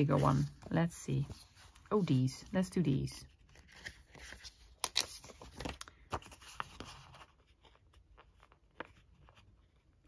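A sheet of thin paper rustles and crinkles in hands.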